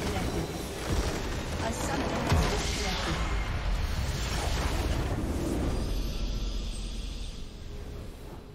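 A huge magical explosion booms and crackles, then rumbles away.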